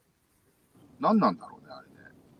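A young man laughs over an online call.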